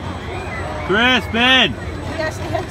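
Young riders on a spinning swing ride shriek and whoop.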